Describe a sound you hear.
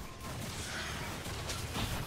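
A magical blast crackles and bursts.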